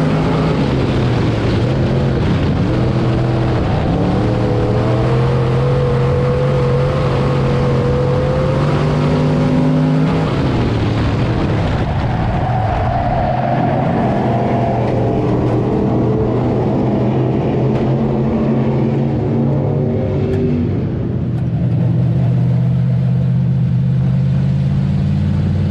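A race car engine roars loudly from inside the cabin, its pitch rising and falling as the car accelerates and slows.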